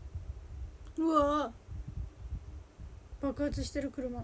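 A young woman lets out short high-pitched exclamations close by.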